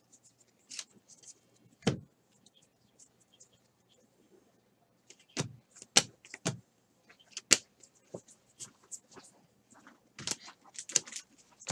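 Trading cards slide, flick and tap against each other as they are handled close by.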